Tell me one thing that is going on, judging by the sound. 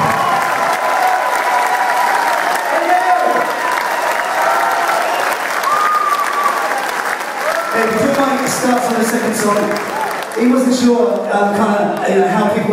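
A man sings through a microphone.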